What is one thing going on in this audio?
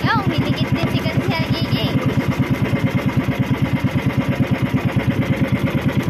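A boat engine chugs loudly and steadily close by.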